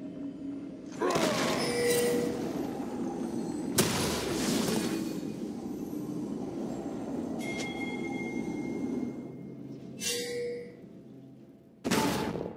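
Game spell effects whoosh and crackle in bursts.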